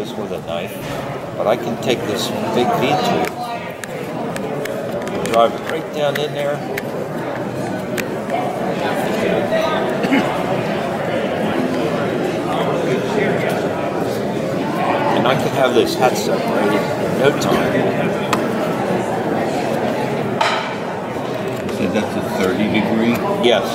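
Many people murmur in a large echoing hall.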